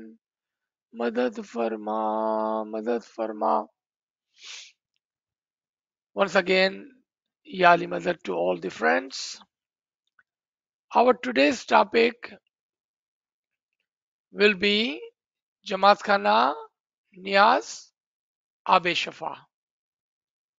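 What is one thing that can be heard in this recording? A middle-aged man speaks calmly through an online call microphone, pausing between phrases.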